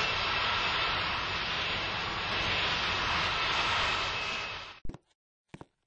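A jet engine roars steadily and then cuts off abruptly.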